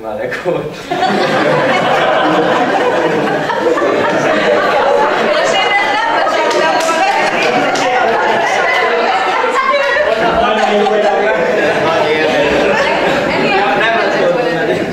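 A group of people laughs loudly together.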